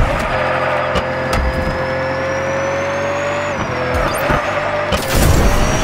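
Tyres screech as a racing car drifts.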